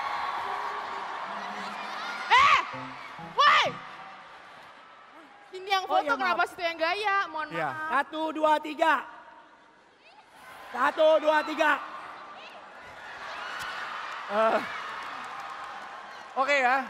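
An audience laughs and cheers in a large hall.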